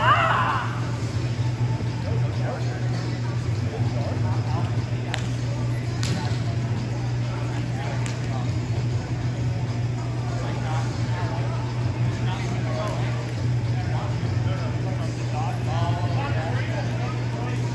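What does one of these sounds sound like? Young men call out and talk in a large echoing hall.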